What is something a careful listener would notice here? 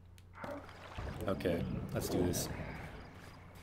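Water splashes as a figure wades through it.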